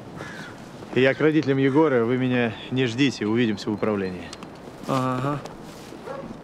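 A second man answers in a calm voice.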